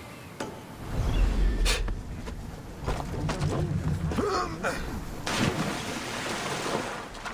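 A man splashes as he dives into the sea.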